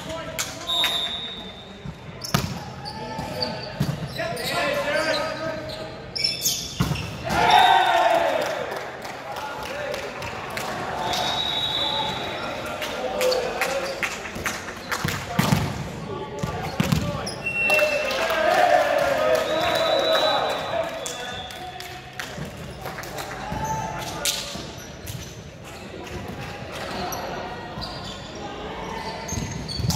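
Young men shout and call out during play.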